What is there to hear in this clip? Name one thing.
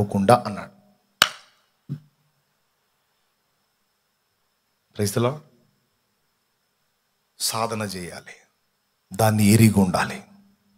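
A man speaks with feeling into a microphone, in short bursts with pauses.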